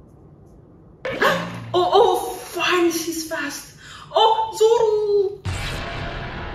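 A young woman speaks excitedly and exclaims close by.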